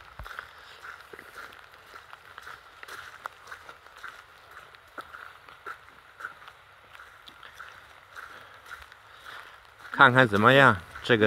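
Light rain patters softly on the ground outdoors.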